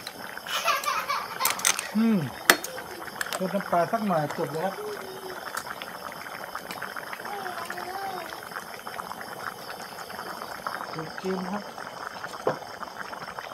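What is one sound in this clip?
A metal ladle clinks against a pot.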